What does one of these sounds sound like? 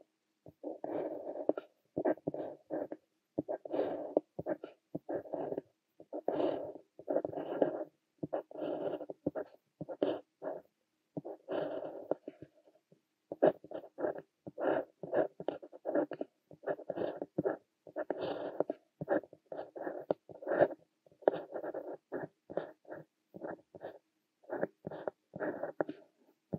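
A fountain pen nib scratches across paper in short strokes, close up.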